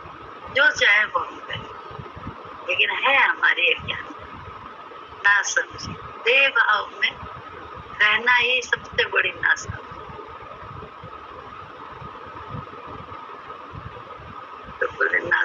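An elderly woman speaks slowly in short bursts, heard through a microphone on a call.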